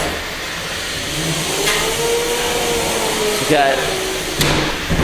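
An electric motor whines, rising and falling in pitch.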